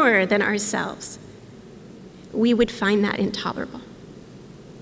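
A woman speaks calmly into a microphone, in bursts with pauses.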